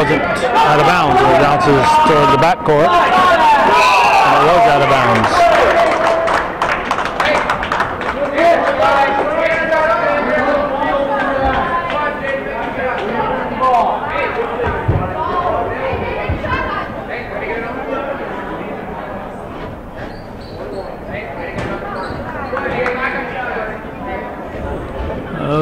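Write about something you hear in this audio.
Children and adults shout and cheer loudly in an echoing gym.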